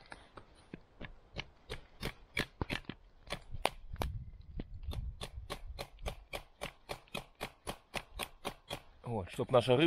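A tool taps steadily and quickly on a wooden peg.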